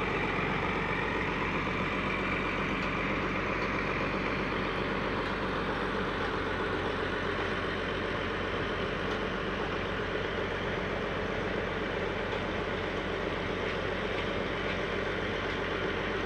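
A large diesel engine idles steadily nearby.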